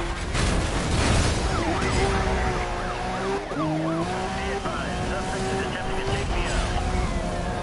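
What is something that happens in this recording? Police sirens wail close by.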